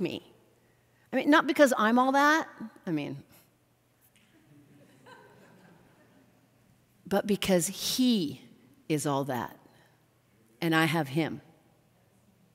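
A middle-aged woman speaks with animation through a microphone, in short bursts with pauses.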